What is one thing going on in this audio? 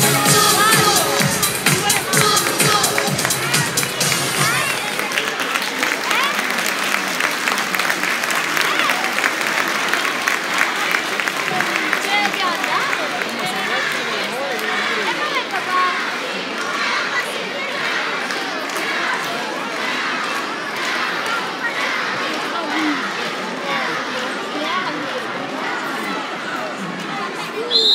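A large crowd cheers and whistles in a big echoing hall.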